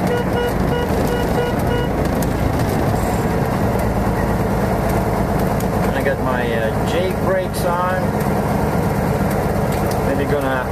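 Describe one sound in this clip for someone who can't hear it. Tyres roll on a road with a low, steady rumble.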